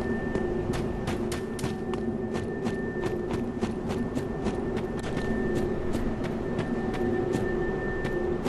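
Armoured footsteps crunch steadily over hard ground.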